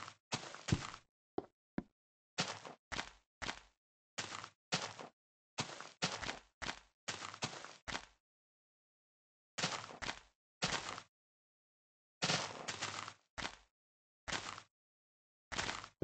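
Footsteps crunch on grass.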